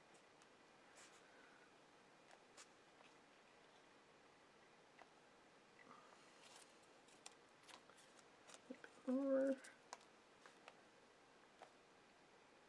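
Paper taps and clicks softly now and then.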